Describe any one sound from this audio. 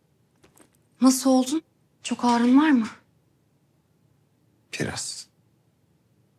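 A young man speaks weakly and quietly, close by.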